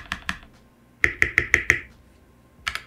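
A space bar thumps several times.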